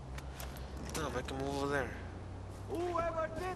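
A man speaks close into a microphone.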